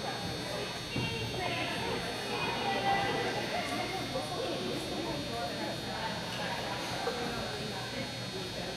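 A woman calls out encouragingly to a dog in a large echoing hall.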